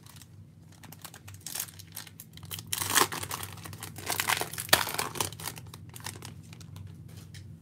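A plastic foil wrapper crinkles and tears open.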